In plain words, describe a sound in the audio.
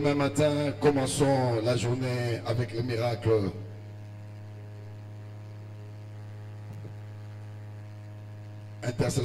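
An older man speaks with animation through a microphone and loudspeakers.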